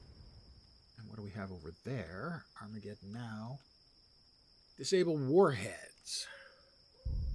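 An elderly man speaks calmly into a close microphone.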